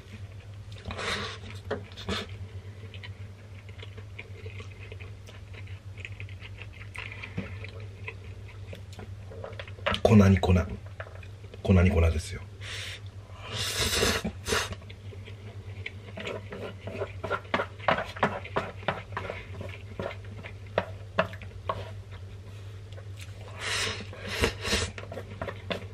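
A man slurps noodles loudly and close by.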